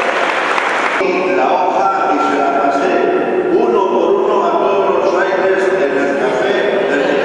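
A man chants through a loudspeaker in an echoing hall.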